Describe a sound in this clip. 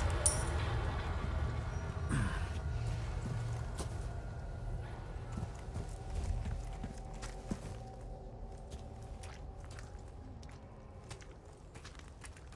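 Footsteps crunch slowly over dirt.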